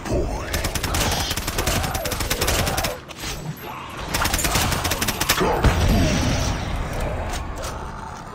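Zombies growl and moan nearby.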